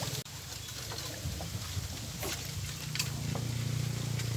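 A fishing rod swishes through the air as it is cast.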